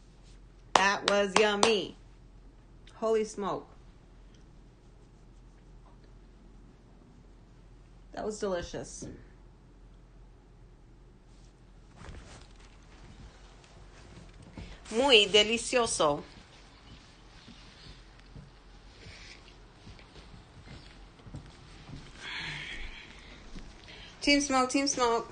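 A young woman talks close up in short bursts, with pauses between.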